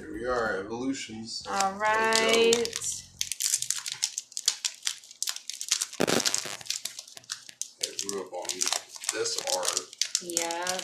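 A foil card wrapper crinkles and rustles as it is handled and torn open.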